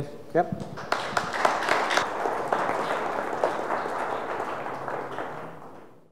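An audience claps in a room.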